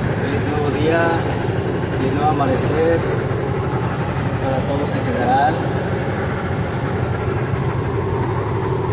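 A truck engine drones steadily while driving.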